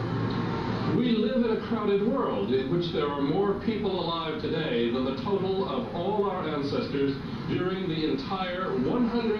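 A middle-aged man speaks with animation through a loudspeaker in a room.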